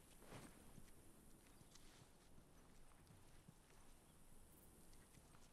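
Soft footsteps shuffle on paving stones.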